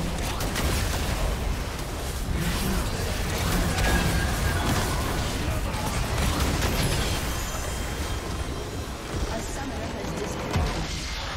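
Game spell effects crackle and boom in a fast fight.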